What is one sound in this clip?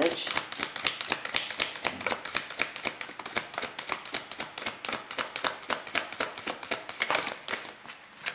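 Playing cards are shuffled, their edges riffling and tapping softly close by.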